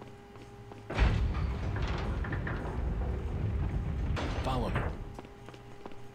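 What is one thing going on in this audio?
A heavy door rumbles and creaks open.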